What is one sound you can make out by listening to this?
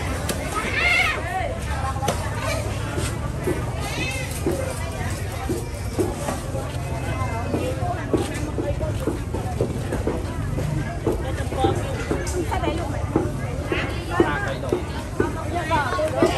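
Footsteps tap regularly on a hard pavement.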